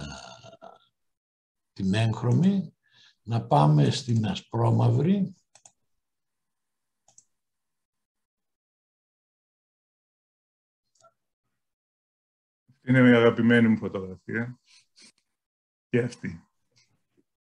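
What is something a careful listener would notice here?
A middle-aged man speaks calmly, heard through an online call, with long pauses.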